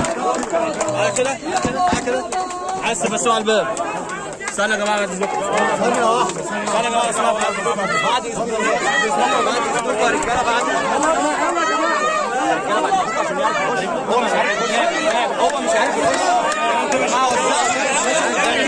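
A crowd of men talk and shout over one another outdoors, close by.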